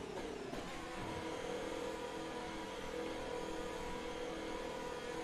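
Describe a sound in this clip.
A racing car engine hums steadily at low revs.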